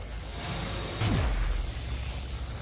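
A sharp electric zap bursts out with a falling whoosh.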